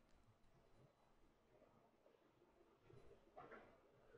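A chess piece taps softly on a wooden board.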